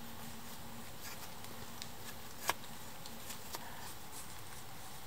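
A knife scrapes and shaves wood with short strokes.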